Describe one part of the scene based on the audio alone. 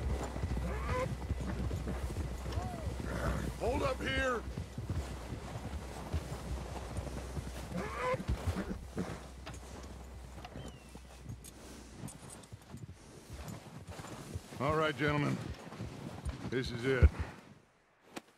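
Horses trudge through deep snow with muffled hoofbeats.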